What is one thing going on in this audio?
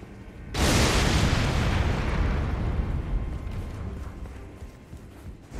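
A fiery explosion roars and slowly fades.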